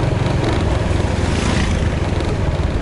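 A motor scooter rides past close by.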